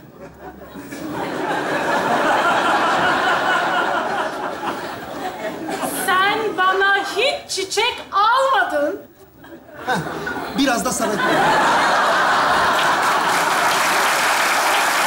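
A large audience laughs loudly in a hall.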